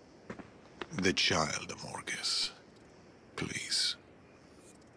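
An elderly man speaks weakly and pleadingly, close by.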